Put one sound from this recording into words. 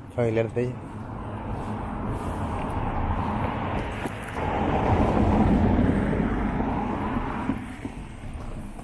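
A car drives past on the street nearby.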